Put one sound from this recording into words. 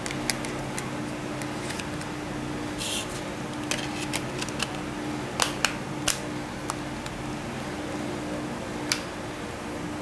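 Plastic clicks and snaps as a phone's back cover is pressed into place.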